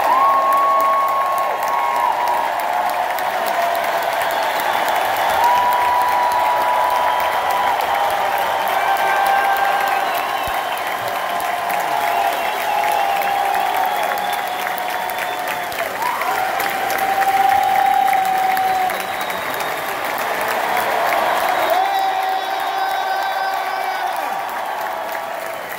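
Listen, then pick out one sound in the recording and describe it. A crowd of men sings together loudly.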